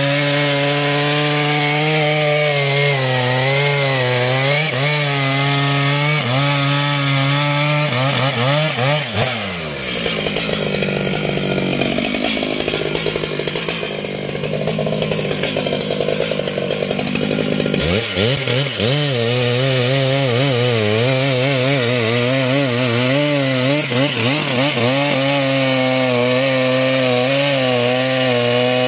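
A chainsaw engine roars loudly, its pitch rising and falling as it revs.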